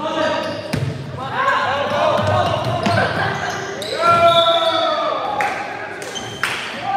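Young players call out to each other in a large echoing hall.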